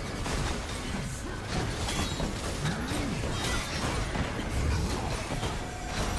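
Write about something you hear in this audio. Laser blasts zap and crackle in quick bursts.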